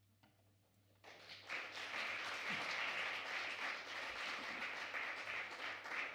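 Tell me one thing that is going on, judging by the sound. A saxophone plays.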